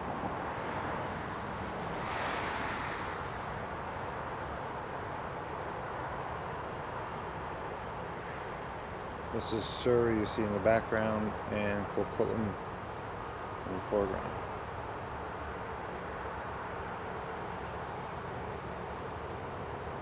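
A distant city hums steadily.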